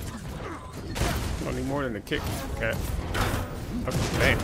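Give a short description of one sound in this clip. Game combat sounds crackle and blast.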